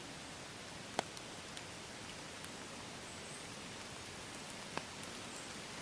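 A squirrel rustles and crackles in dry leaves close by.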